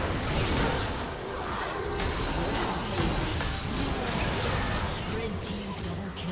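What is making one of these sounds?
Game sounds ring out to announce each kill.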